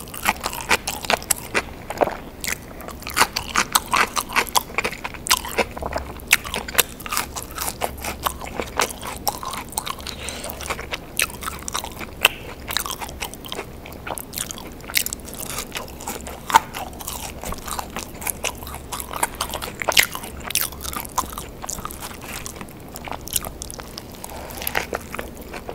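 A woman chews crunchy food with wet, smacking sounds close to a microphone.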